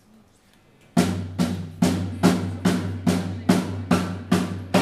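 A band of horns, guitar and drums plays a rhythmic tune.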